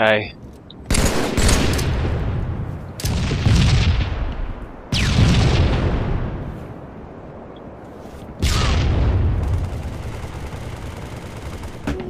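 Loud rifle shots boom one at a time, each followed by a rolling echo.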